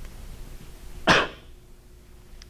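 A man coughs.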